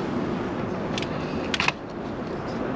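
A fishing pole knocks and clatters against a rest.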